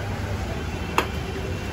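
A metal lid clanks against the rim of a pot.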